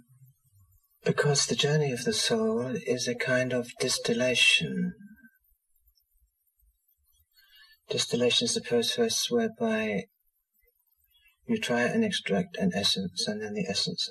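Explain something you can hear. A middle-aged man speaks calmly and thoughtfully, close to the microphone.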